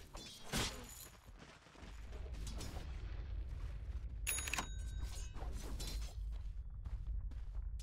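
Magic spells crackle and whoosh during a fight.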